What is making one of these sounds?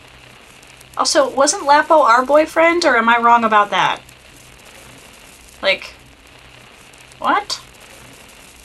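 A young woman speaks with animation into a nearby microphone.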